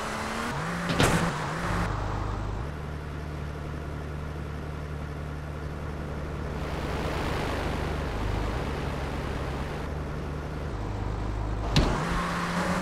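A car lands with a heavy thud.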